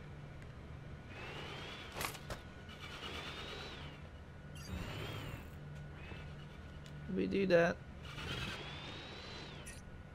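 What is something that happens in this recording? A small remote-control car's electric motor whines, rising and falling in pitch.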